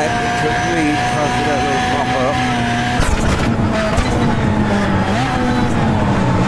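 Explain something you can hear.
A race car engine drones steadily at high revs.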